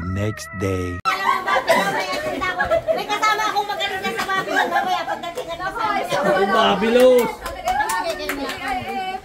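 Young women laugh and talk loudly close by.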